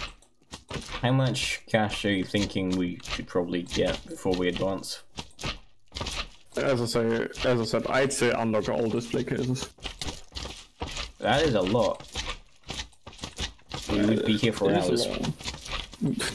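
A young man talks with animation, close into a microphone.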